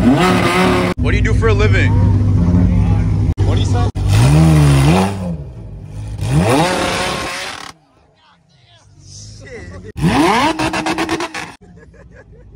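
A sports car engine revs loudly and roars.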